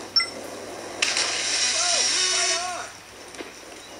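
A cartoon splash of water sounds from a small speaker.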